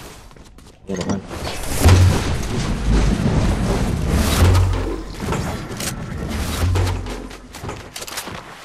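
A loud rushing whoosh roars and swells, then fades.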